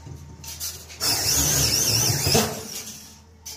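An electric drill whirs as it bores into metal.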